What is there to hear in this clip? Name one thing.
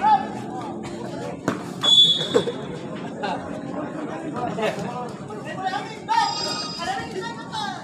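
A crowd of spectators cheers and shouts.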